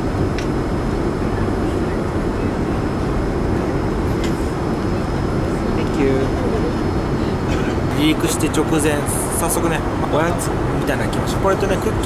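A steady low roar of aircraft engines fills a cabin.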